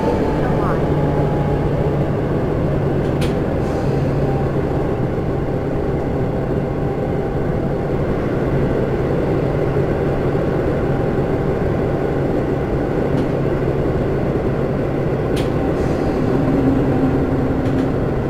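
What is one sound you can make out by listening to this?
A train rumbles steadily along the rails through a tunnel.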